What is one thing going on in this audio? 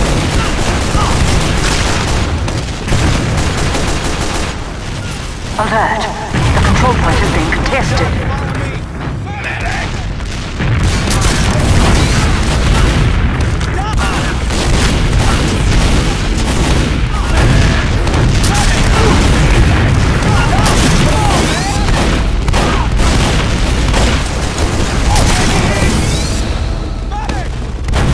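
Gunfire and explosions crack and boom in a game.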